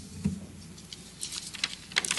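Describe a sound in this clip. Paper rustles near a microphone.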